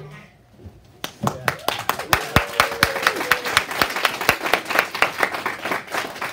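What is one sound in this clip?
Children clap their hands in a quick, steady rhythm.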